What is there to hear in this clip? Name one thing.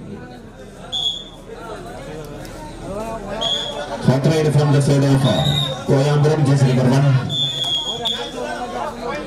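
A referee blows short, sharp whistle blasts.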